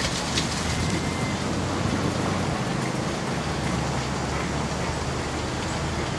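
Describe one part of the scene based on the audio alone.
Water splashes and churns behind a pedal boat.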